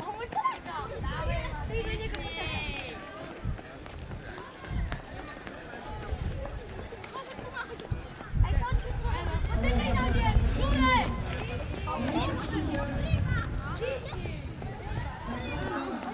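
Sneakers patter on asphalt as boys run past.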